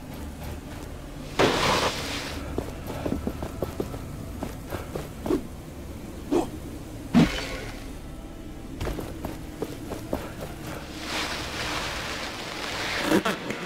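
A body rolls across sand with a rushing whoosh.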